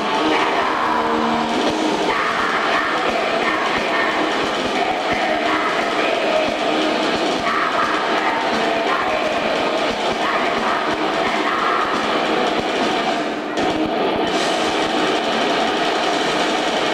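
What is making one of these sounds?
A man sings harshly into a microphone over loudspeakers.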